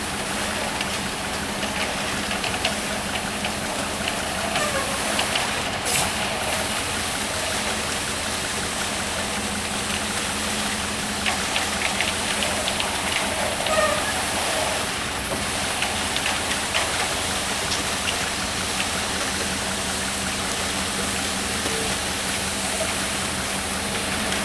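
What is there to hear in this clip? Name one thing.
Wet concrete slides and pours down a metal chute.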